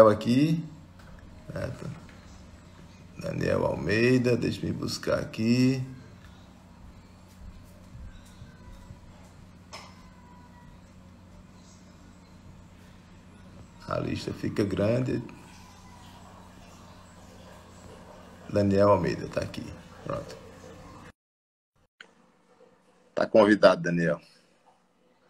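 A middle-aged man speaks calmly and close into a phone's microphone, with long pauses.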